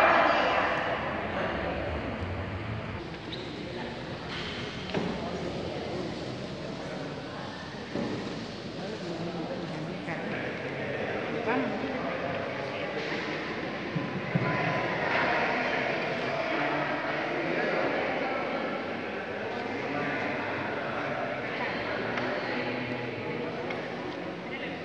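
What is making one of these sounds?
A crowd of people murmurs and talks quietly in a large echoing hall.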